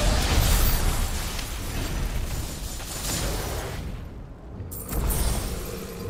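Electricity crackles and zaps loudly.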